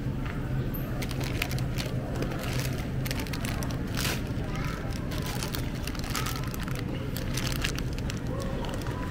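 Plastic bags of oranges rustle and crinkle as they are handled.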